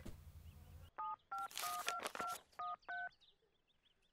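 Touch-tone beeps sound as a phone number is dialled.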